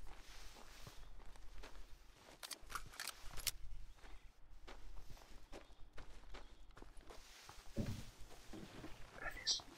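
Footsteps rustle through dense bushes.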